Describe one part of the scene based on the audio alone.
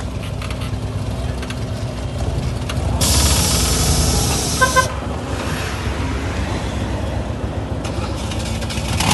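An old car engine rumbles and putters as a car rolls slowly past.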